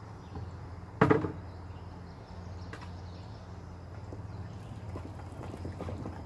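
Water splashes and sloshes against a small boat's hull.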